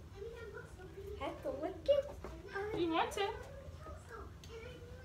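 A young boy speaks excitedly.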